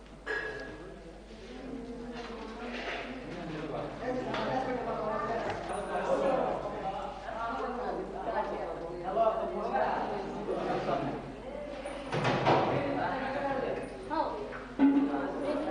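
Several men chant and talk together nearby.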